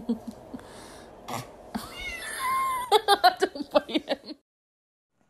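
A baby laughs loudly and gleefully.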